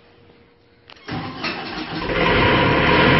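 A diesel generator engine cranks and starts up.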